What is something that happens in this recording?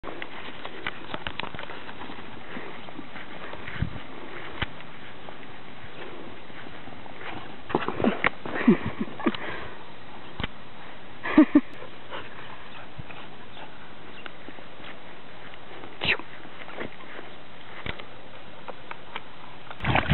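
Dogs' paws thud and rustle on grass as they run.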